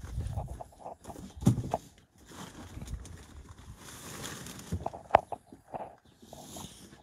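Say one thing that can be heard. Plastic sheeting crinkles and rustles as it is handled.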